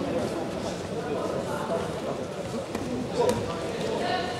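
A body thuds onto a mat.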